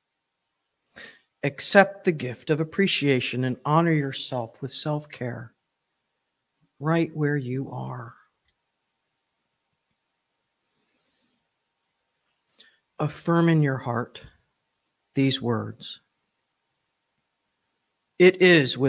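An older woman speaks calmly into a microphone, with pauses between phrases.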